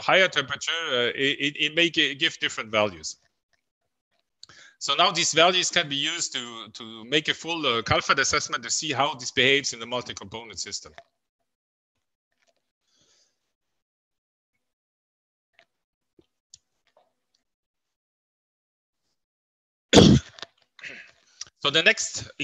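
A man speaks calmly over an online call, explaining with pauses.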